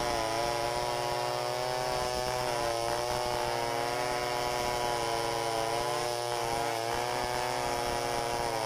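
A second chainsaw drones steadily nearby.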